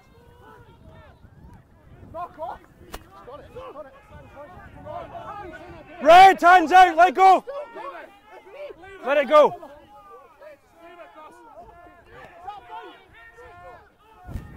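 Men shout loudly across an open field.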